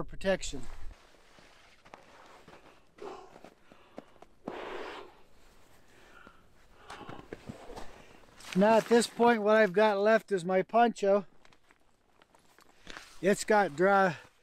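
Fabric rustles as a man handles a tarp.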